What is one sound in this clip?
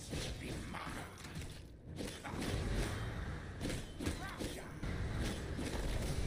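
Video game spells whoosh and crackle in a fight.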